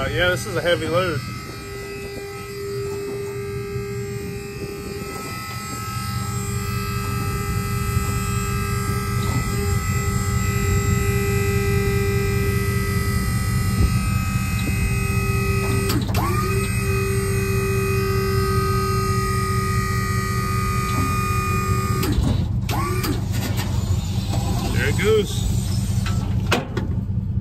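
A machine engine drones steadily with a whine.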